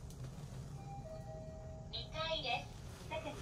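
An elevator chime rings.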